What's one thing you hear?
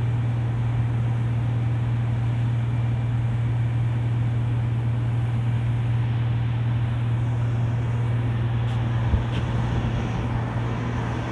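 A ship's engine drones with a steady low hum.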